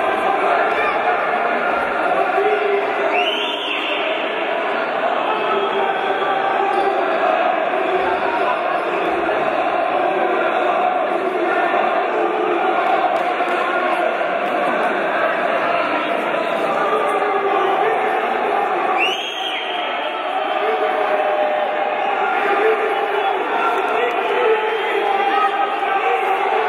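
Players' shoes squeak and thud on a wooden court.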